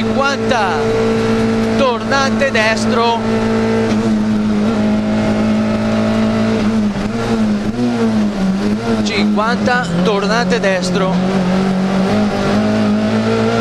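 A rally car's engine roars loudly and steadily, shifting pitch as the car speeds along.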